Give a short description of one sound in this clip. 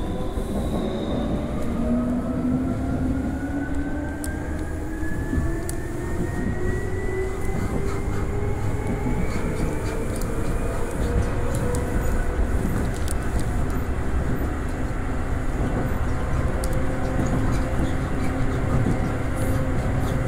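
An electric train motor hums and rises steadily in pitch as the train speeds up.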